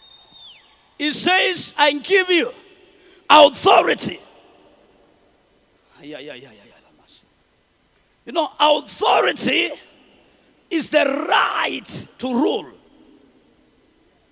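A man speaks with animation through a microphone, his voice echoing in a large hall.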